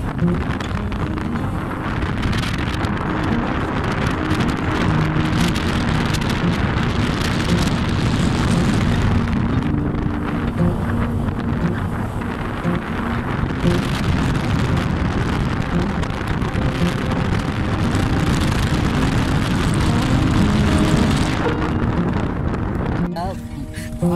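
Wind rushes past a moving vehicle.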